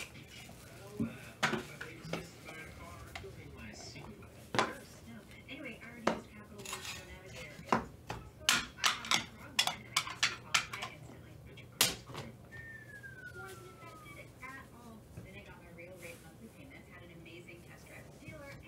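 Cards click and shuffle between gloved hands.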